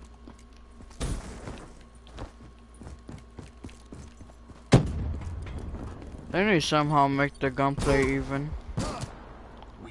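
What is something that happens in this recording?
Gunshots crack sharply a few times.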